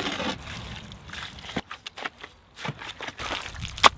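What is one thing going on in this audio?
A spade scrapes and stirs thick mud in a wheelbarrow.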